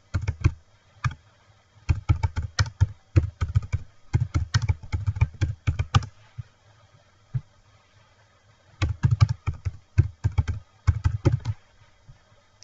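Keys on a keyboard clack in quick bursts of typing.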